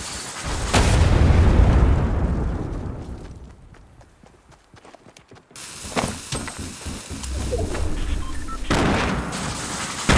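Footsteps run on pavement.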